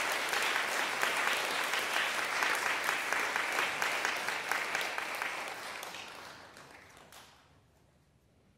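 An audience applauds warmly in a large hall, then the clapping fades away.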